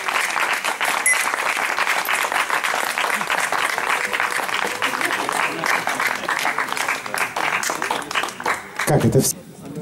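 An audience applauds outdoors.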